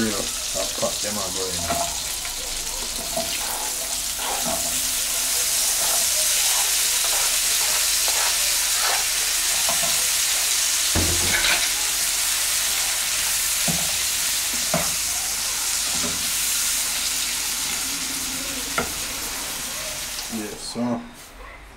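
Oil sizzles loudly in a hot pan.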